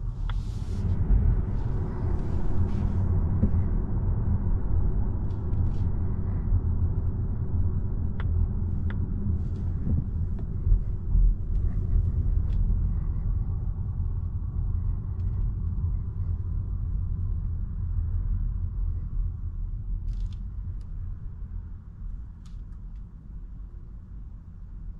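A car's engine and tyres rumble steadily from inside the cabin, growing quieter toward the end.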